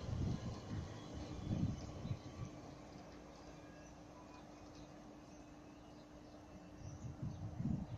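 A train rumbles away along the tracks and fades into the distance.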